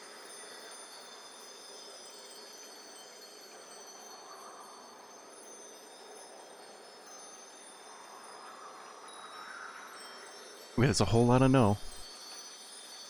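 Soft, quiet music plays steadily.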